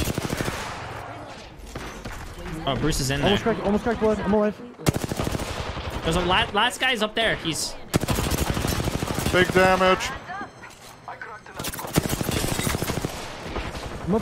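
Rapid automatic gunfire from a video game rattles in bursts.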